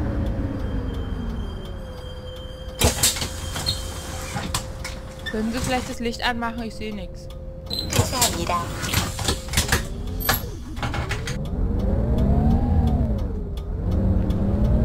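A bus engine idles with a low rumble, then revs up as the bus pulls away.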